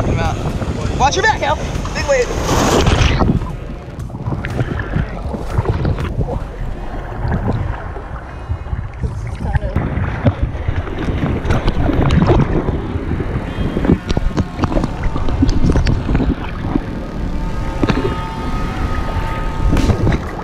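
Waves wash and churn around people wading in the sea, with wind outdoors.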